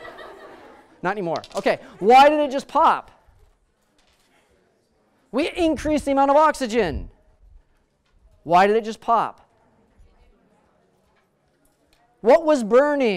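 A middle-aged man lectures with animation, speaking in bursts.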